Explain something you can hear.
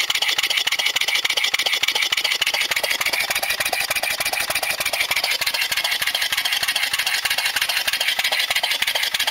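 A small engine runs with a rapid, steady clatter close by.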